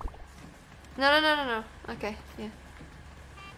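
A young woman exclaims loudly and playfully, close to a microphone.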